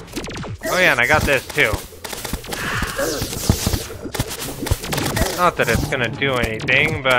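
Rapid game sound effects of weapon blows and hits ring out.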